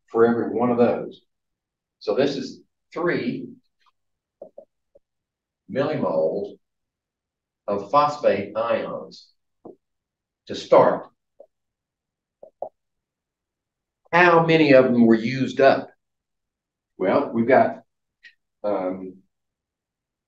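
A middle-aged man lectures in short bursts with pauses.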